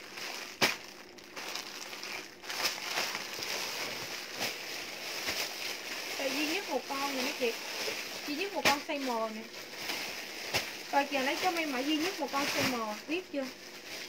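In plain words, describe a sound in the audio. Denim fabric rustles and shuffles.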